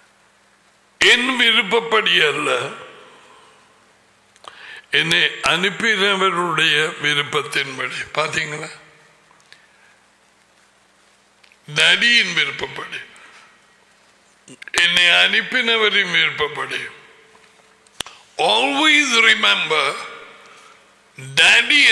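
An older man speaks with animation close to a microphone, in bursts with pauses.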